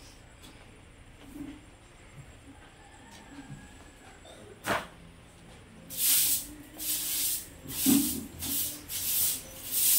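A broom sweeps briskly across paving stones.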